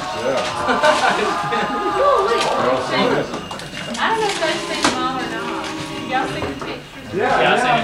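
Wrapping paper rustles and tears as a gift is unwrapped.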